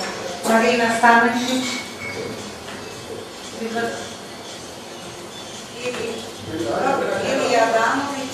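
A woman speaks into a microphone, heard through a loudspeaker.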